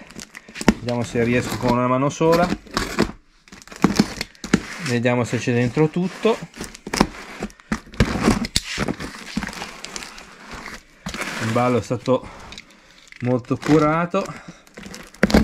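Packing tape crackles and rips on a cardboard box.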